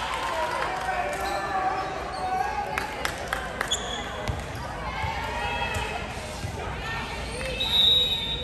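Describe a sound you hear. A volleyball is hit with a sharp smack.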